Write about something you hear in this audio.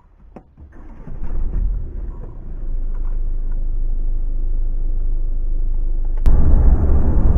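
A van engine hums steadily as it idles.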